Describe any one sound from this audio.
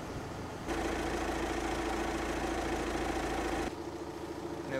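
A vehicle engine idles steadily nearby.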